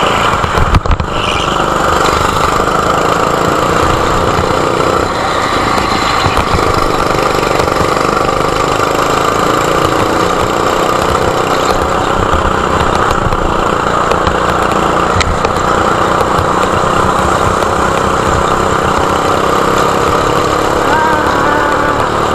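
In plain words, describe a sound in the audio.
A go-kart engine buzzes loudly and steadily, rising and falling in pitch.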